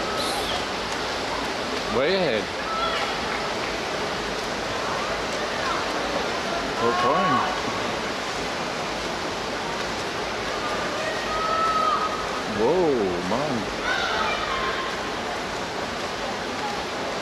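Swimmers splash and churn the water steadily.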